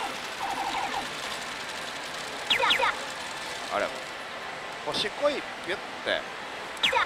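A slot machine plays bright electronic chimes and jingles.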